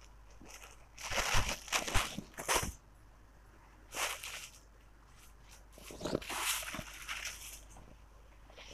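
Cloth rustles as fabric is unfolded and handled.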